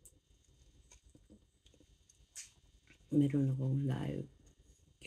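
A middle-aged woman chews food softly and close by.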